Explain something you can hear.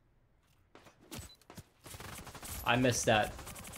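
Rapid gunshots crack in quick bursts.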